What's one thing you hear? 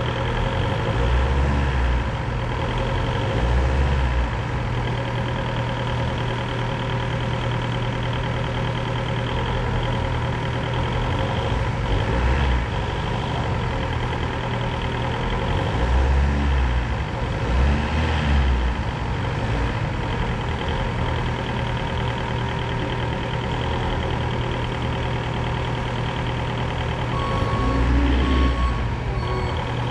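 A forklift engine revs up in short bursts.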